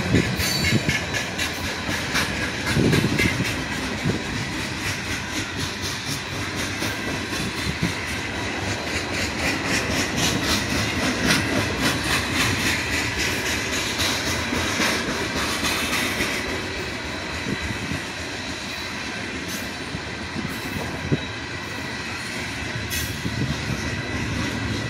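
A freight train rolls past close by, its steel wheels rumbling and squealing on the rails.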